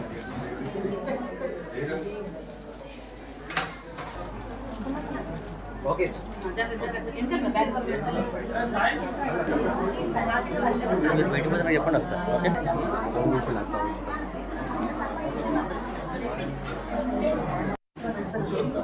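A group of women chatter and talk over one another nearby.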